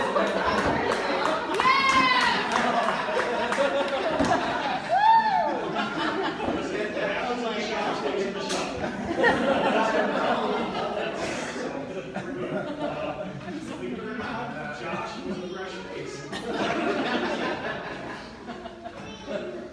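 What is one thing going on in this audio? A crowd of adults chatters and talks over one another in a busy, echoing room.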